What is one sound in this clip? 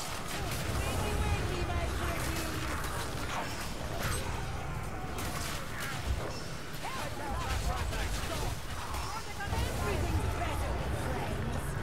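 Magic blasts whoosh and burst in a game's combat.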